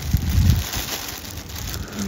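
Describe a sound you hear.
Cloth rustles as it is handled.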